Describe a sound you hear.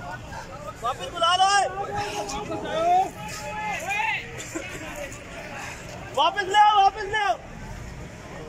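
A young man speaks loudly and agitatedly close by.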